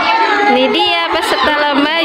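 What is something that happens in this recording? A young girl laughs close by.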